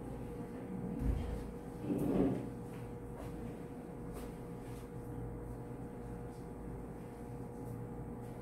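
Footsteps shuffle across a floor.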